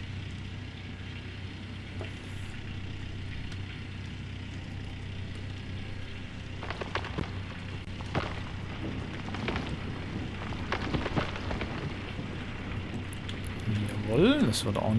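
A diesel excavator engine rumbles steadily.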